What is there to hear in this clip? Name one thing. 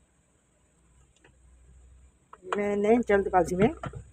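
A metal lid clanks onto a cooking pot.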